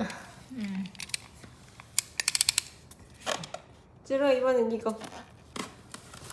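A plastic package crinkles and taps under a hand.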